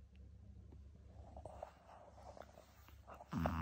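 A small dog shuffles about on a blanket, rustling it.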